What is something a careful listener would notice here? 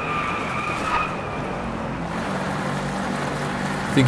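Tyres screech as a car slides through a bend.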